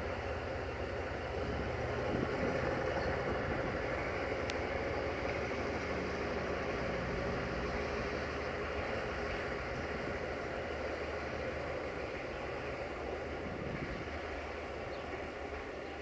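Steel wheels clatter over rail joints.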